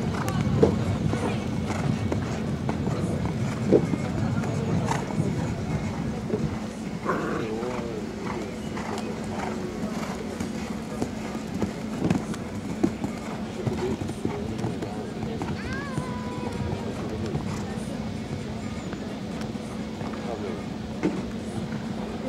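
A horse's hooves thud on soft sand at a canter.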